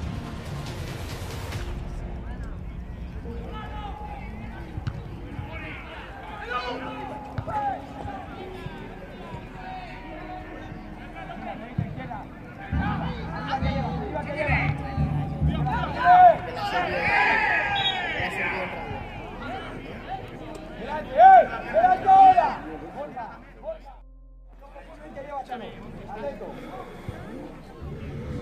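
Football players shout to each other outdoors, some distance away.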